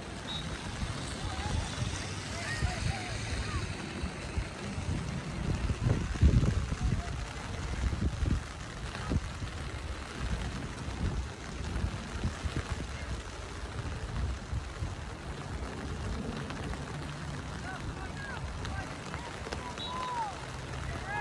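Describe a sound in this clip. Wind gusts across an open field.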